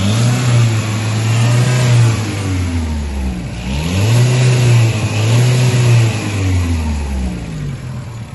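A car engine revs up and down several times.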